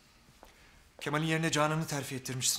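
A younger man speaks animatedly, close by.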